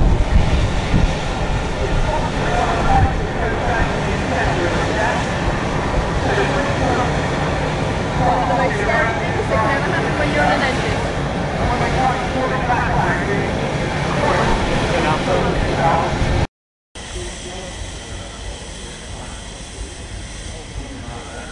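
A steam engine chugs steadily.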